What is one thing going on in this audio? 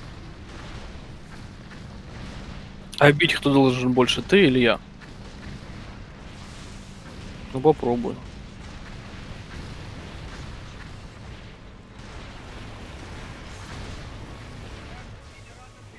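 Magic spells burst and whoosh in a fight.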